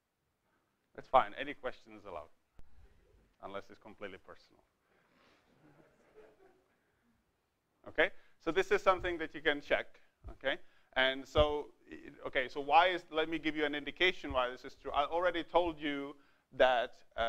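A man lectures calmly in a large room, heard through a microphone.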